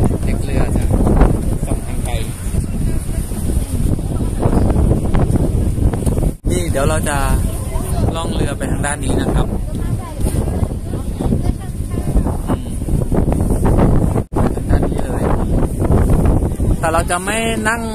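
Wind blows over the microphone outdoors.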